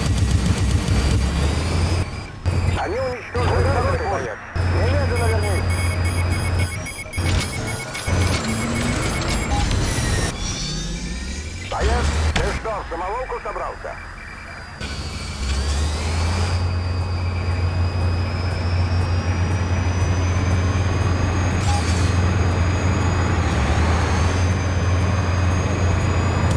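A helicopter's rotor thumps and drones steadily.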